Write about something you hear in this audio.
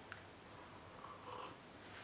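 A woman sips from a mug.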